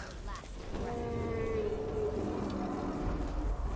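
A dragon roars loudly.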